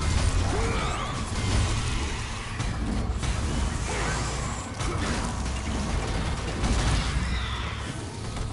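Blades clash and slash against enemies in quick, heavy hits.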